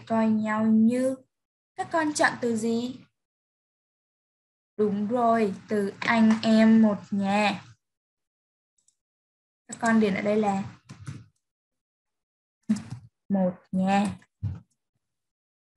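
A woman speaks calmly and clearly into a microphone, in short phrases with pauses.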